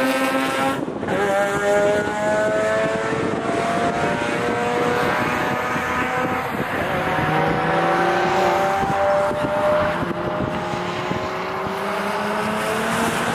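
A car engine revs hard as the car speeds past and drives away into the distance.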